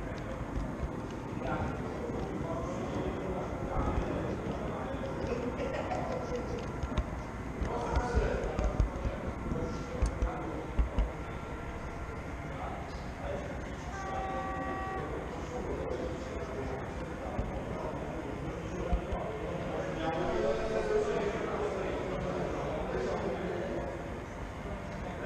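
Adults chatter in the background of a large echoing hall.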